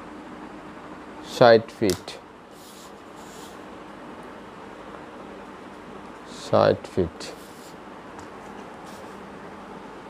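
A sheet of paper rustles as it is moved.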